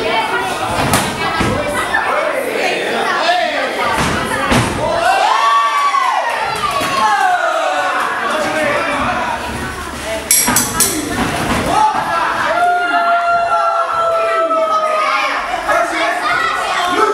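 Gloved punches and kicks thud against bodies.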